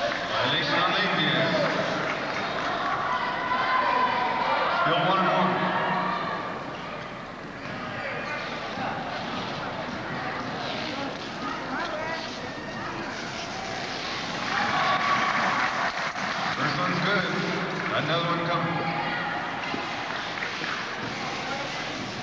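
Spectators murmur and chatter in a large echoing hall.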